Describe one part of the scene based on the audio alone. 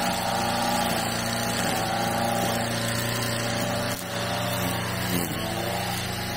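A string trimmer engine whines steadily close by.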